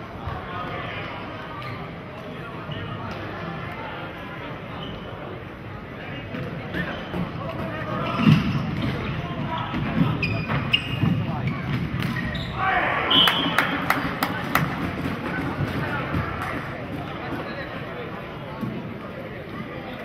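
Floorball sticks clack against a ball in an echoing hall.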